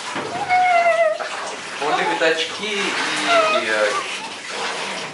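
A woman talks with delight close by.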